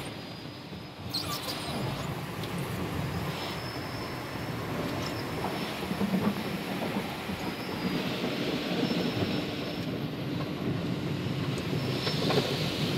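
Car wash brushes scrub and thump against a car.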